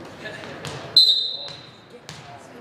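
A referee blows a short whistle blast.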